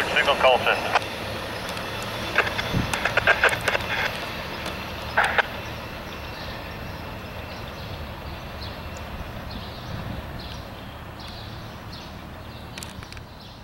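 A departing train's rumble fades into the distance.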